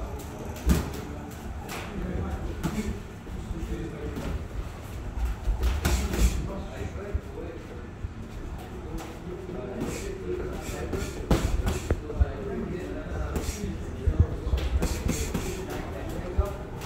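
Boxing gloves thud against pads in quick bursts.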